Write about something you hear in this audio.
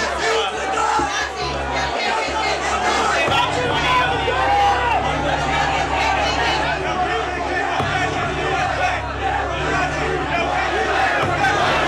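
A man shouts loudly nearby.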